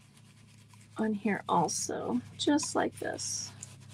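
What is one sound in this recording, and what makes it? A stiff brush dabs and scratches on paper.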